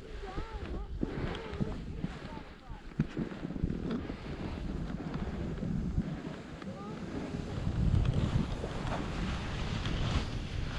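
Skis swish and hiss through deep powder snow.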